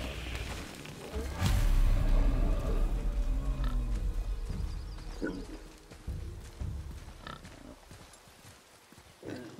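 A large boar grunts and snorts close by.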